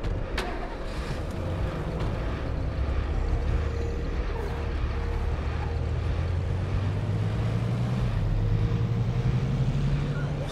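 A car engine hums and revs up as a car drives off.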